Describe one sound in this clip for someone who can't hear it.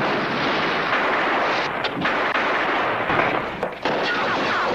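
Gunshots crack in a narrow corridor.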